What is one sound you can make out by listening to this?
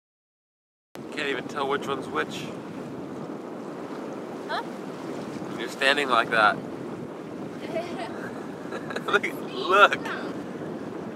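Wind and water rush steadily around a boat.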